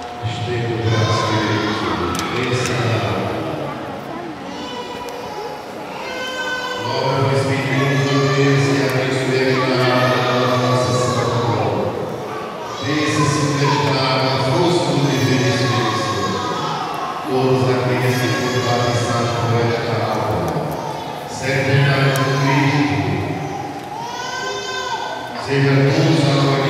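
A woman sings through a loudspeaker in a large echoing hall.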